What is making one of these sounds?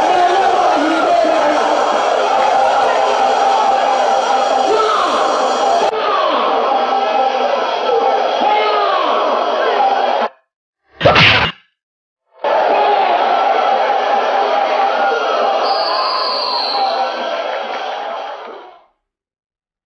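A large crowd cheers and shouts loudly.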